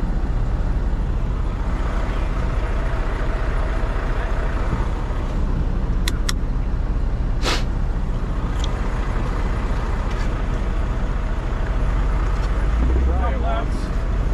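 A shovel scrapes across packed snow.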